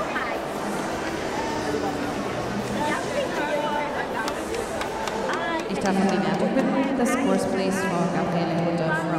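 Several women talk with one another close by.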